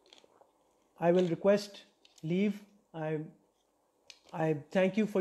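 A young man talks calmly and close to a clip-on microphone.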